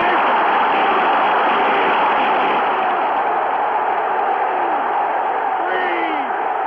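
A large crowd roars loudly throughout.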